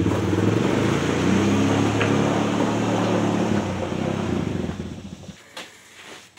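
An all-terrain vehicle's engine rumbles as it drives away.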